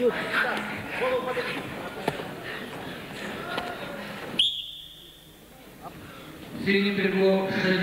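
Wrestlers' bodies scuff and thump on a mat.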